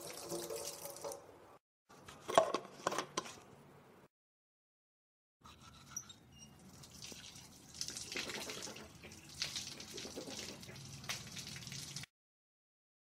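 A toothbrush scrubs against teeth.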